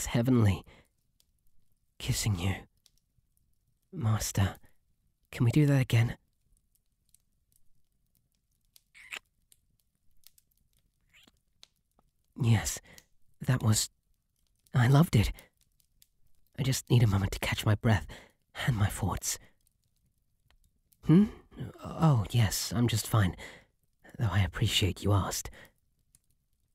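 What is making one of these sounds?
A young man speaks softly, close to a microphone, in short bursts with pauses.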